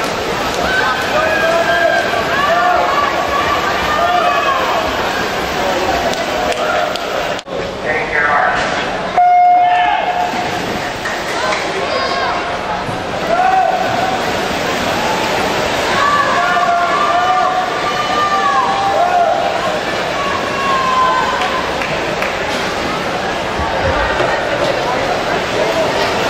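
A crowd of spectators cheers and shouts in an echoing hall.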